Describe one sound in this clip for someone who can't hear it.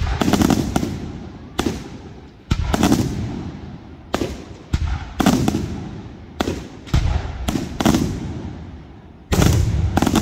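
Fireworks crackle and sizzle after bursting.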